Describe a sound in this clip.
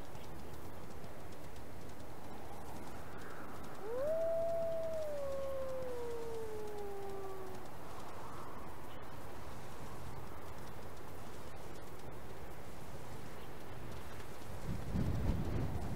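Paws patter softly over grass and gravel.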